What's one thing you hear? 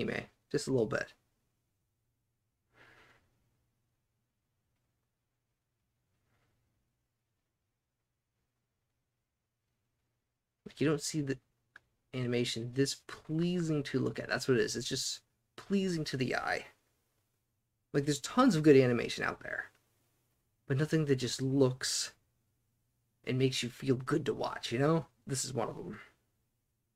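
A middle-aged man talks calmly and with animation into a close microphone, with pauses.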